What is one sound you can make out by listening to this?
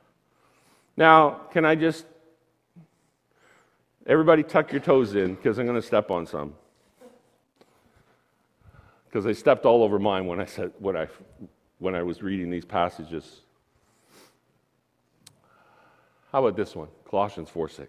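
A man preaches with animation through a microphone in a large room, pausing between phrases.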